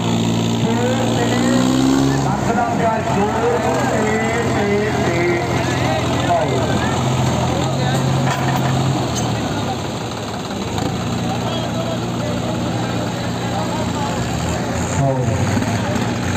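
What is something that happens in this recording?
Tractor engines roar and strain under heavy load.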